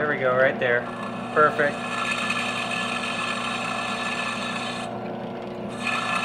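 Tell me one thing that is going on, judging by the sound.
A drill bit grinds into hard material with a high, rough whine.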